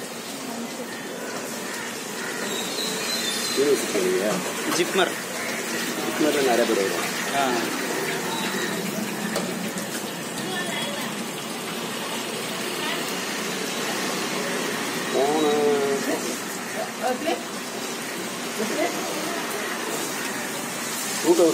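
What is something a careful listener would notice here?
Hot oil sizzles and bubbles steadily in a large pan.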